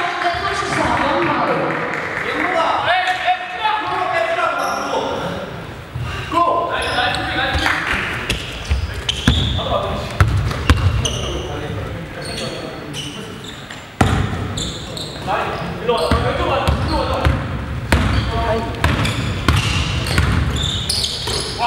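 Young men talk and call out in an echoing hall.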